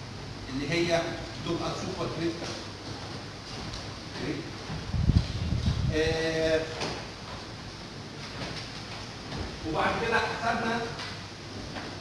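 A man speaks in bursts at a distance in a room with some echo, as if lecturing.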